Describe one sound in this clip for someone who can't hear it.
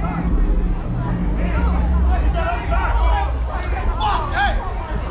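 A crowd of people talk and shout outdoors at a distance.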